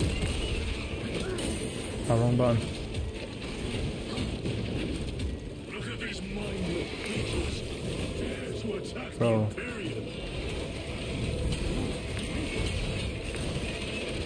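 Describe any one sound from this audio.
Blades clash and slash loudly.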